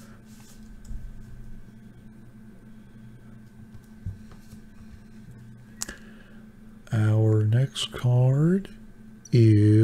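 Plastic card holders click and rustle as hands handle them.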